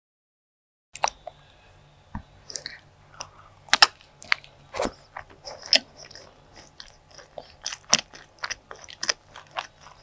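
Soft pastry squishes and tears between fingers close to a microphone.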